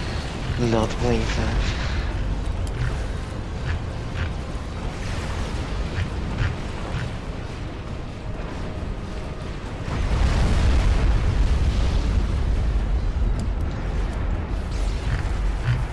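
A low rumble of battle noise rolls on.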